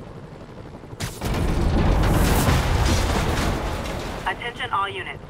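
A heavy metal crash rumbles loudly with scattering debris.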